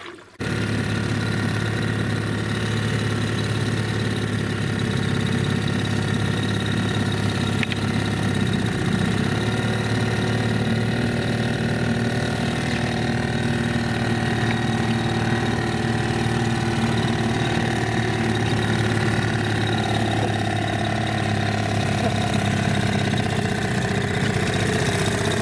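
Water splashes and churns behind a moving boat.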